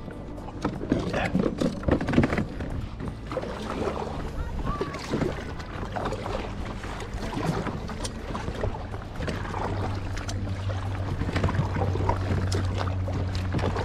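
Water laps against a kayak's hull.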